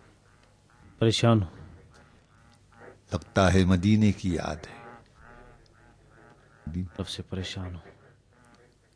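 A middle-aged man answers in a worried voice, close by.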